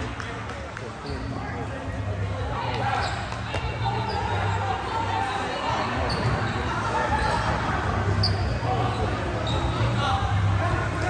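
Young men talk and call out across the hall.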